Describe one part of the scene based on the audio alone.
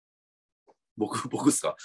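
A middle-aged man begins speaking over an online call.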